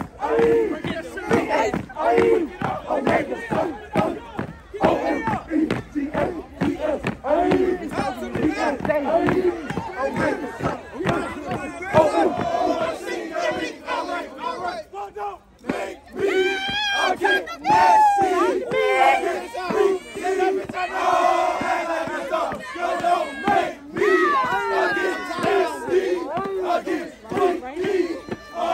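A group of young men chant loudly in rhythm outdoors.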